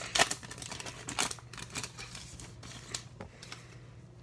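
A plastic wrapper crinkles and rustles as hands tear it open.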